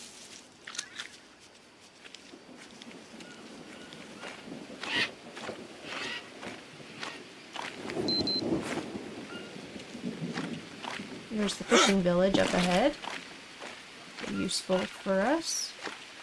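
Footsteps squelch on soft, muddy ground.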